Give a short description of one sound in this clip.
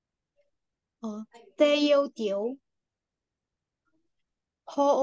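A woman speaks slowly and clearly over an online call, in short bursts.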